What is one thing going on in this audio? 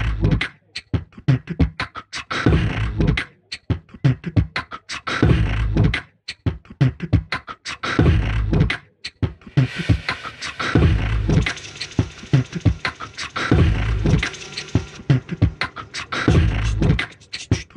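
A man sings loudly through a microphone over a live band.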